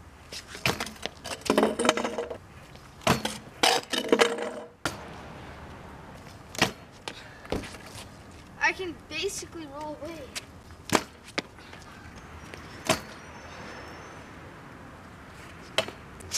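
Scooter wheels roll and scrape on concrete.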